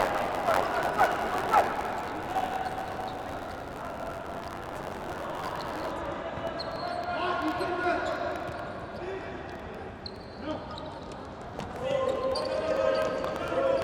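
A ball is kicked with sharp thuds on a hard indoor court.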